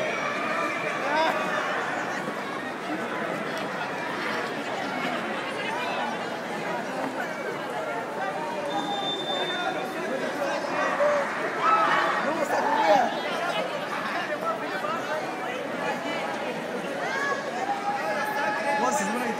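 A large crowd of people murmurs and talks in a busy, echoing space.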